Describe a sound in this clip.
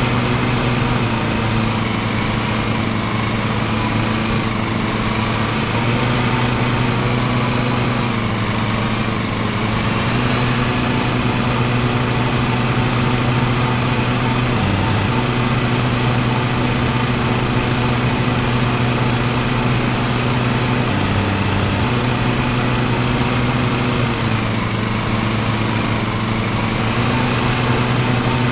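Grass swishes under the mower's blades.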